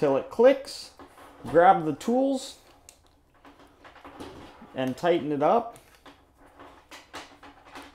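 A plastic connector clicks and rattles as it is handled.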